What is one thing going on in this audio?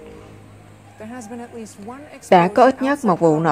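A woman speaks clearly and steadily into a microphone.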